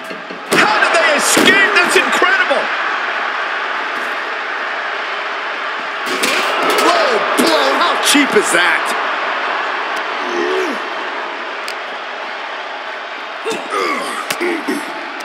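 Heavy blows and body slams thud in a wrestling fight.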